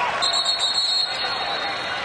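A referee blows a sharp whistle in a large echoing arena.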